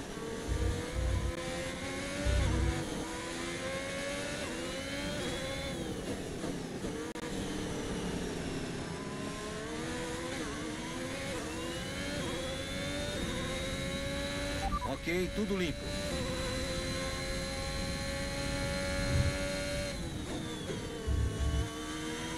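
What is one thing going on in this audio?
A racing car engine screams, rising and falling in pitch as it shifts gears.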